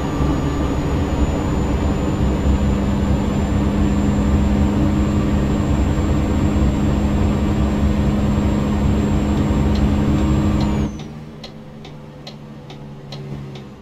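A truck engine drones steadily, then drops to a quieter hum.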